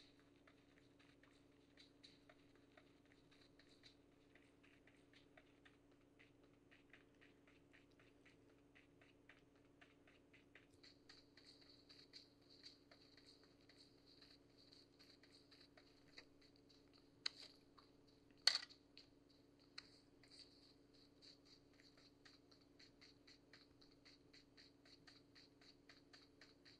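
Quick running footsteps from a mobile game play through a small phone speaker.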